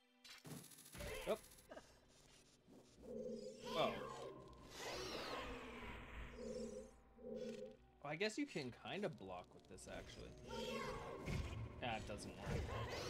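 Video game music and sound effects play.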